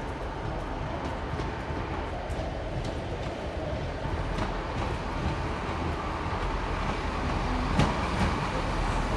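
Wheels clatter over rail joints and points.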